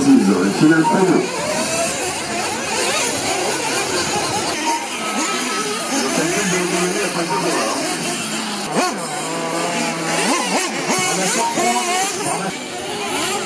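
Small model car motors whine at high speed.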